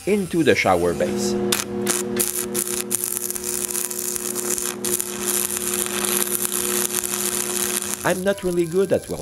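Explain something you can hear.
An electric welder crackles and hisses steadily.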